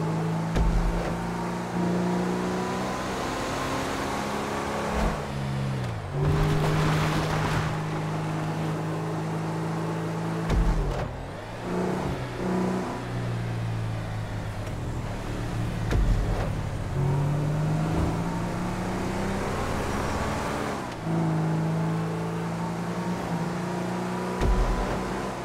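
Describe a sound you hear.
A car engine drones steadily, its pitch dropping and climbing again as it shifts gears.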